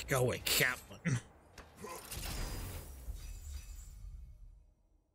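A heavy chest lid opens with a magical whoosh.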